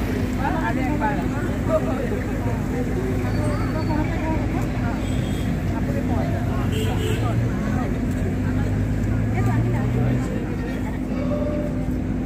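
A crowd of women chatter and talk close by, outdoors.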